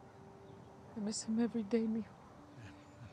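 A woman speaks quietly and briefly, close by.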